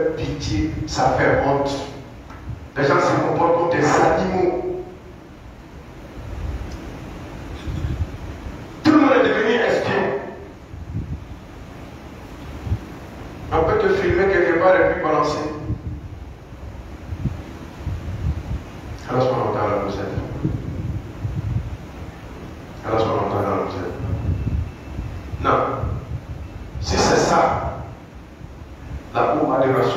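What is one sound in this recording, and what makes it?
A man preaches loudly into a microphone in bursts, with pauses between phrases, in an echoing hall.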